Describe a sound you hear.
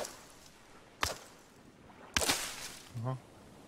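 A blade slashes through leafy plants.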